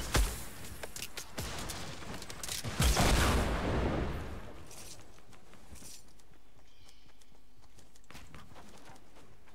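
Quick clicks and knocks of building sound in rapid bursts.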